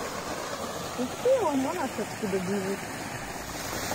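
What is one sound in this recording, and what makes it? A woman speaks casually, close by.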